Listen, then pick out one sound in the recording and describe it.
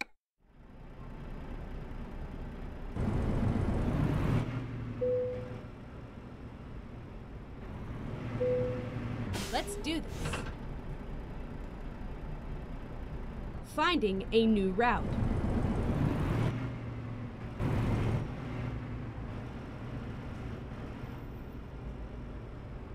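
A truck engine hums and rumbles steadily, rising as the truck pulls away.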